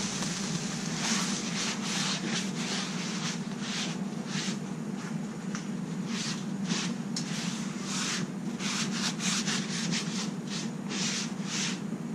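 A paper towel scrubs back and forth across a hot griddle.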